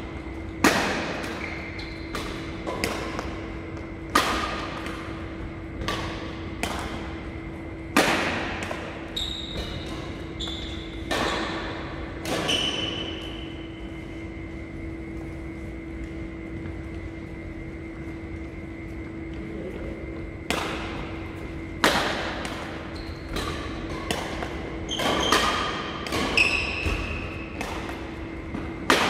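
Squeaky shoes chirp on a court floor.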